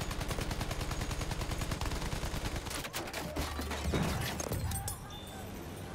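Machine guns fire in a rapid, steady rattle.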